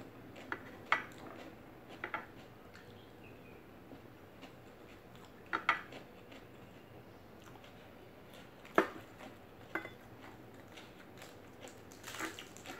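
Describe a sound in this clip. A woman picks food from a plate with her fingers.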